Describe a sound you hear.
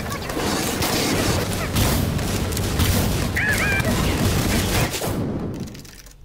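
Gunfire rattles and bangs.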